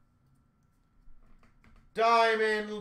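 A card is set down on a glass counter with a soft tap.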